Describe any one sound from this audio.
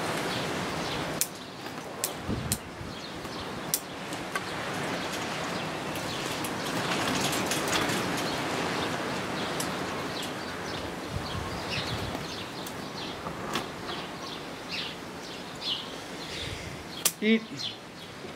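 Scissors snip at small twigs.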